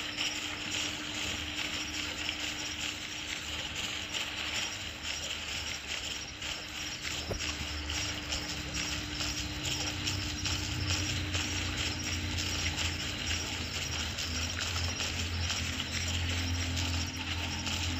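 An animal's paws pad softly over grass and leaves.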